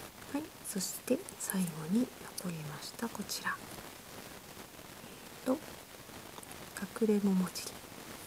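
A small plastic toy clicks and snaps as it is pulled open.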